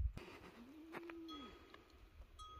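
A goat bleats nearby.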